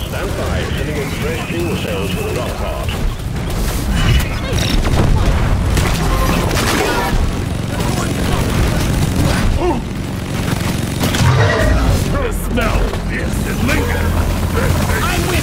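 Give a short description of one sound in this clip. A heavy automatic gun fires in rapid bursts.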